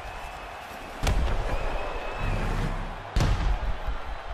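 A kick lands on a body with a heavy thud.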